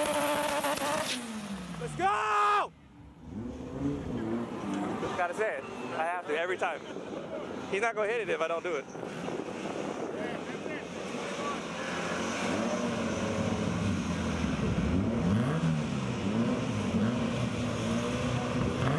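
A car engine revs hard and rumbles, rising and falling in pitch.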